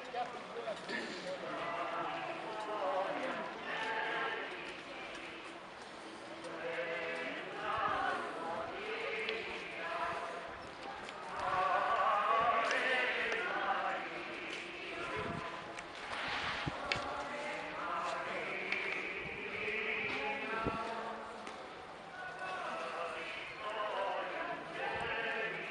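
Men and women talk close by as they walk outdoors.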